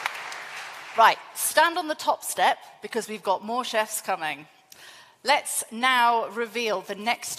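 A woman speaks into a microphone over loudspeakers in a large hall.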